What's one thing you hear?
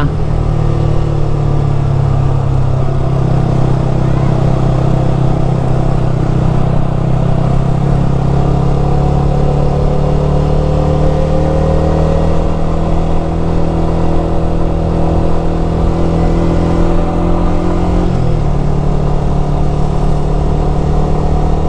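A motorcycle engine hums steadily, its pitch shifting with the throttle.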